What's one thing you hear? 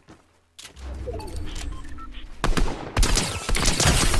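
Rifle shots crack in a video game.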